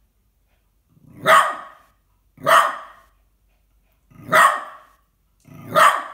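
A small dog barks loudly and sharply, close by, a few times.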